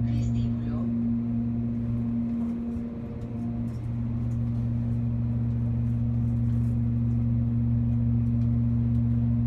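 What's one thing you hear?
An elevator motor hums steadily in a small enclosed space.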